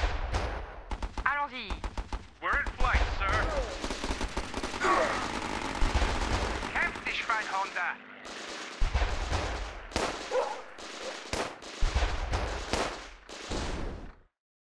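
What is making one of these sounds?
Gunfire crackles in quick bursts.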